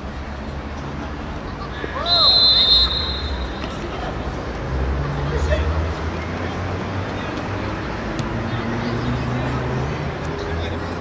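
Spectators murmur in the distance outdoors.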